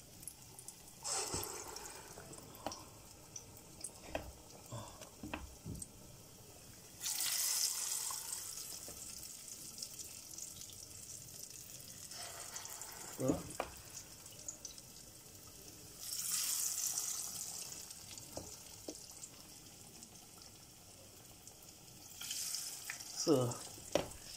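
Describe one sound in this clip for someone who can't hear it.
Hot oil sizzles and hisses as batter is dropped in.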